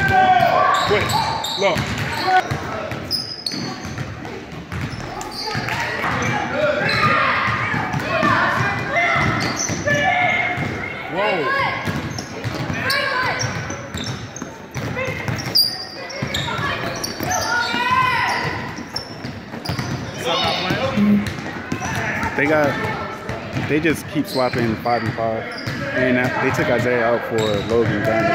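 Children shout and call out across a large echoing gym.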